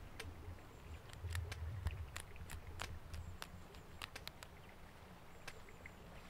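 A knife snips through plant stems with small sharp clicks.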